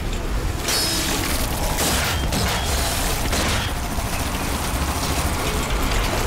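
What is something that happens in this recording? A rifle fires several sharp shots.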